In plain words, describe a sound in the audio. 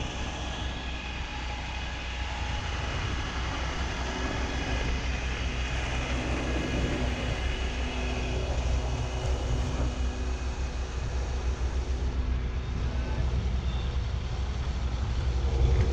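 Wind rumbles and buffets loudly outdoors.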